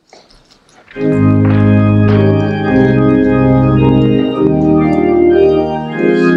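An organ plays a hymn, filling the room.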